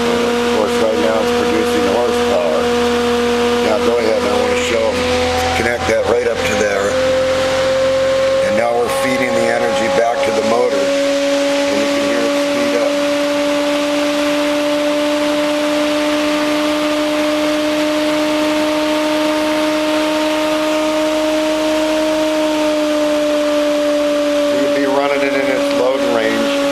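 A small electric motor whirs with a steady hum that slowly rises in pitch.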